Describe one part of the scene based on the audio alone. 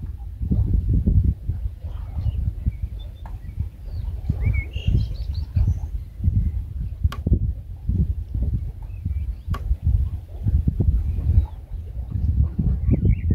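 A man wades slowly through shallow water.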